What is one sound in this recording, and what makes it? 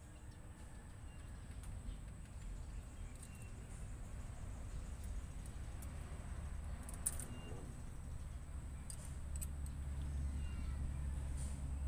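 A ratchet wrench clicks as bolts are loosened on an engine.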